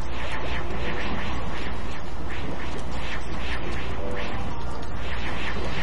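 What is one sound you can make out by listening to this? A small propeller engine drones steadily.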